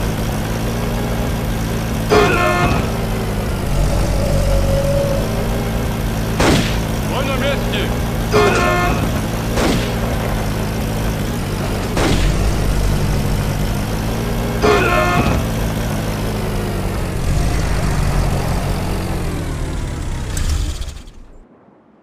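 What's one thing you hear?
A jeep engine hums steadily.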